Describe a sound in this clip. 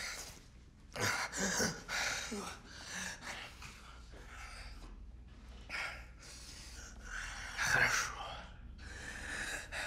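A young man speaks in a slurred, dazed voice, close by.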